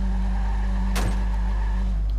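A car scrapes and bangs against a concrete barrier.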